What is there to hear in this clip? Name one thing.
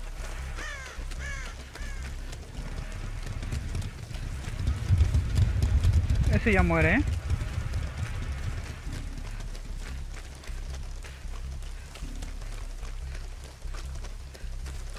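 Quick footsteps run over soft ground.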